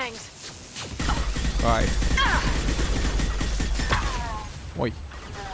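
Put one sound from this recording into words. Video game gunfire crackles.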